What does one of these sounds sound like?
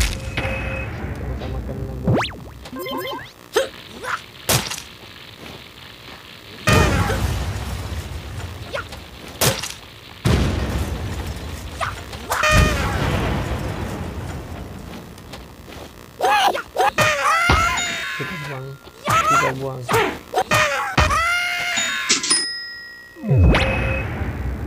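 Game sound effects of blasts and hits play in loud bursts.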